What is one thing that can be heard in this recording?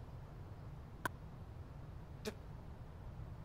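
A pen clicks twice.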